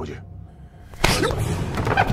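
A fist strikes a man with a loud thud.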